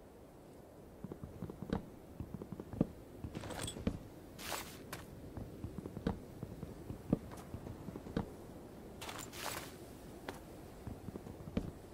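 An axe chops wood with dull, repeated knocks.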